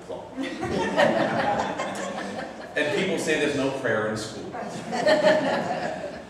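A middle-aged man speaks calmly through a microphone in a large echoing room.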